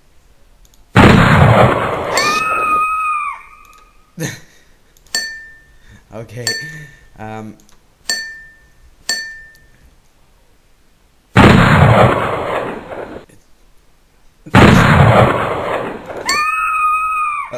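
A computer game plays a loud, harsh game-over sound.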